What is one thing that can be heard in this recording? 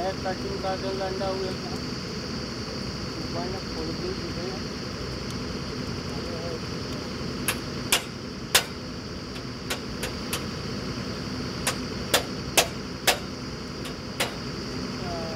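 A drilling rig engine runs with a steady low rumble.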